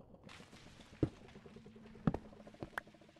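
A heavy block thuds as it is set down.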